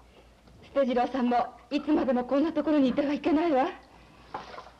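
A young woman speaks in a high, lively voice close by.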